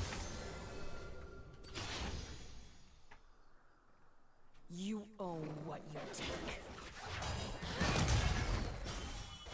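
A young woman speaks close to a microphone.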